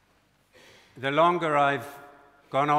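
An elderly man intones through a microphone in a large echoing hall.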